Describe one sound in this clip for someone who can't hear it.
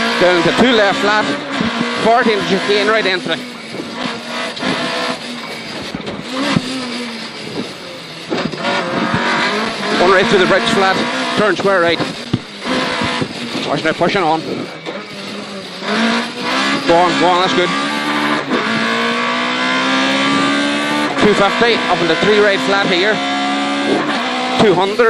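A co-driver reads out pace notes rapidly over an intercom.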